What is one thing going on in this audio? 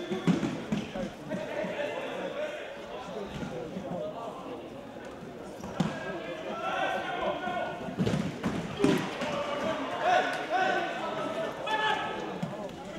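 Young men shout to each other in a large echoing hall.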